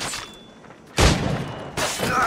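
A heavy thud of someone landing hits the ground.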